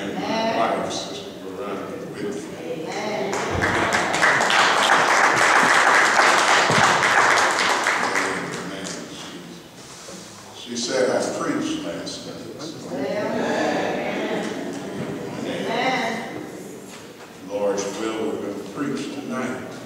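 An older man speaks steadily through a microphone in a large echoing hall.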